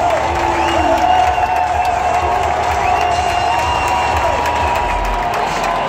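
A large crowd cheers and roars loudly in an open stadium.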